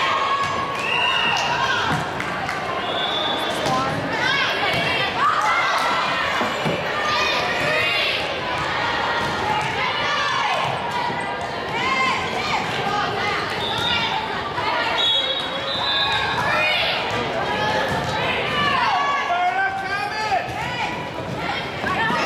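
Young women call out to each other across the court.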